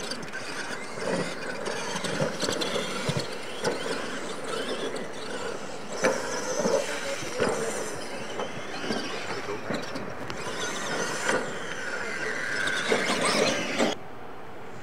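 A radio-controlled monster truck races over dirt.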